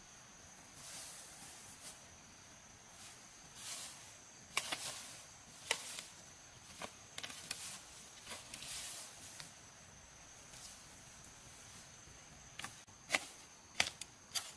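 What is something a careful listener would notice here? A hoe scrapes and swishes through grass.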